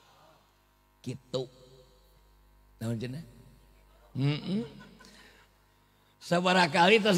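A man speaks in short bursts with pauses into a microphone over a loudspeaker.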